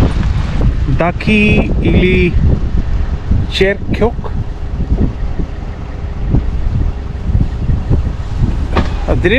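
A middle-aged man speaks calmly from a car nearby.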